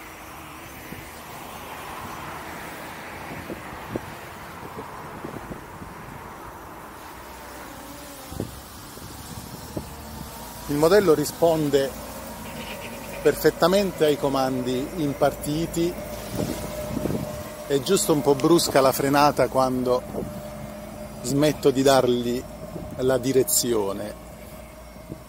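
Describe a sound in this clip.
A small drone buzzes overhead.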